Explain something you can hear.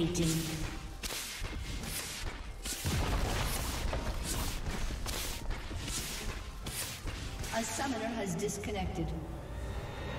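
Magic spells crackle and blows strike in a quick, busy fight.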